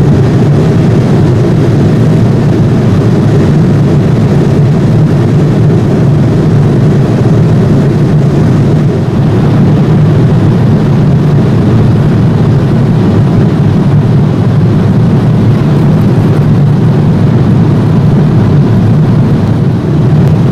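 Jet engines drone and roar steadily inside an airliner cabin.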